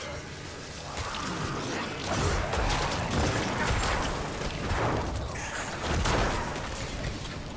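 Game combat sounds crash and thud with explosions.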